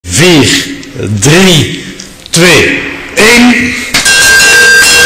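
A bell rings loudly several times.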